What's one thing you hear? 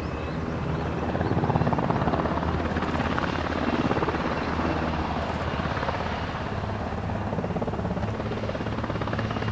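An MH-60S Seahawk helicopter lifts off, its rotor beating louder.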